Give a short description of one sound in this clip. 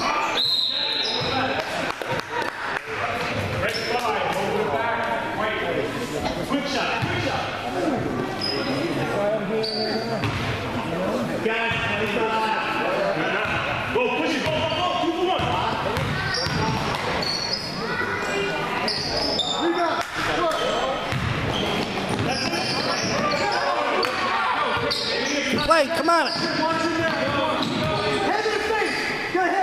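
A crowd of adults and children chatters and cheers in a large echoing hall.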